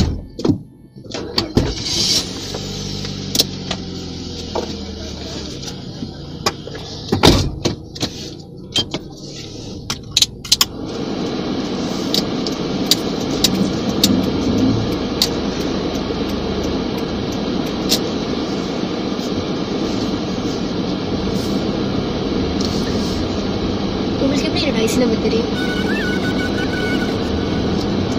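A car engine hums steadily with road noise.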